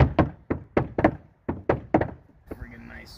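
Hammers bang on wood in quick, loud blows.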